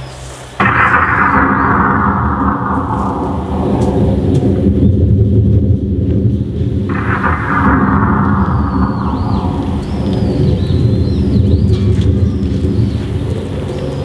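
Ceremonial music plays loudly outdoors.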